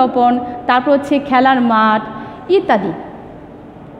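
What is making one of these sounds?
A young woman speaks up close in a lively, sing-song voice.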